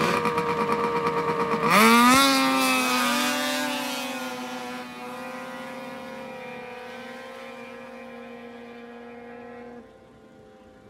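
A snowmobile engine idles, then roars as it speeds away into the distance and fades.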